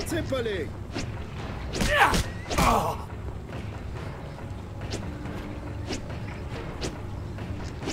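Fists thud against a body in a fight.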